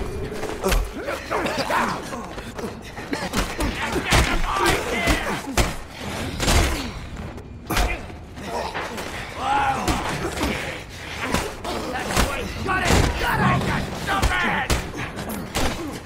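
Punches land with heavy thuds in a brawl.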